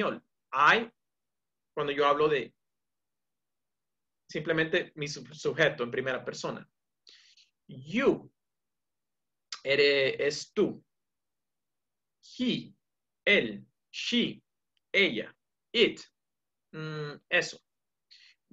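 A young man speaks calmly over an online call, pausing between phrases.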